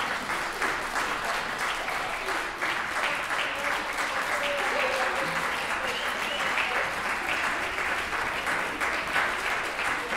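An audience applauds steadily in an echoing hall.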